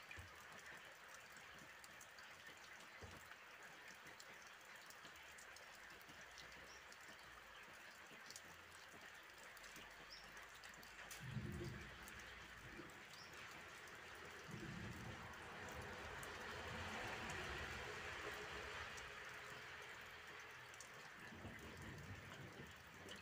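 Steady rain falls and patters on roofs outdoors.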